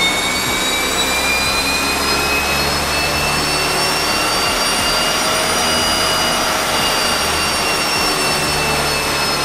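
Tyres whine on spinning dyno rollers.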